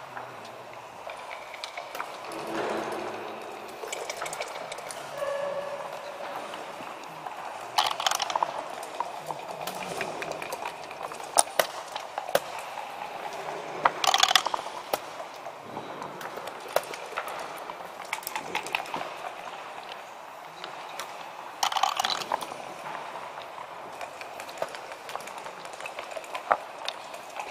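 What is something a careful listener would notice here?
Wooden game pieces click against a board.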